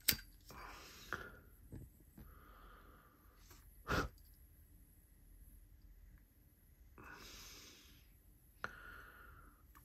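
A lighter's flint wheel scrapes as it is struck.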